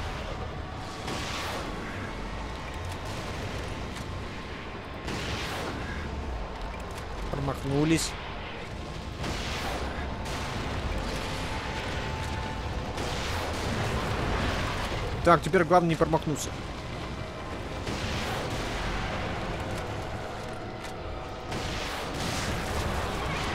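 A rifle fires loud booming shots every few seconds.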